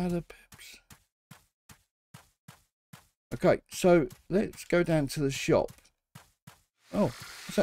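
Light footsteps patter quickly on grass.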